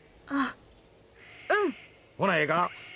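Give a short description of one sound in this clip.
A boy answers hesitantly.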